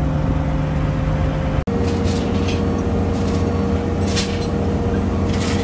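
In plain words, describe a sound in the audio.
A heavy diesel engine rumbles steadily at idle nearby.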